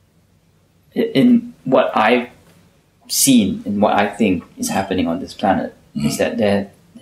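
A young man speaks softly and hesitantly, close by.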